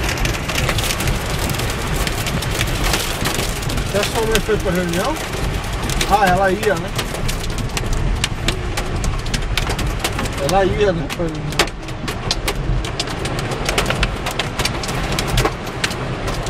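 Heavy rain pelts a car windshield.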